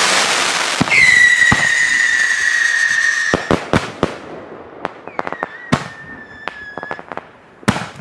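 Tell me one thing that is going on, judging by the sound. A firework whistles with a high falling tone.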